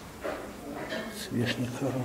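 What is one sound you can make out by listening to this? Porcelain clinks softly as a hand moves a candle holder.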